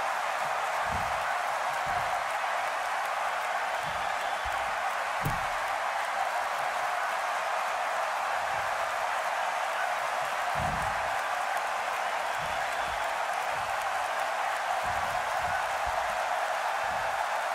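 A large crowd roars steadily.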